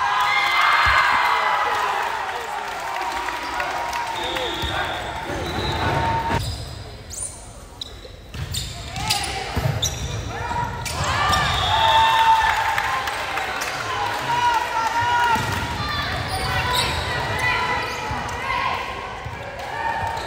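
Young women players call out loudly to each other.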